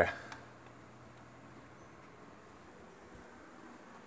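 A plug is pushed into a wall socket with a click.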